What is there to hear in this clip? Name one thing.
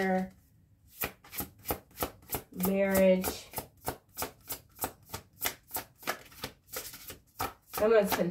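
Cards are shuffled with soft, regular slaps.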